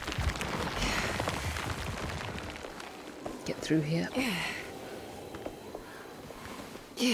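Footsteps shuffle slowly over a hard floor.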